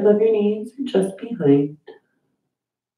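A woman speaks calmly and softly into a microphone.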